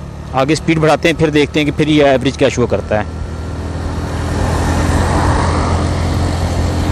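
Wind rushes past, growing louder as the motorcycle speeds up.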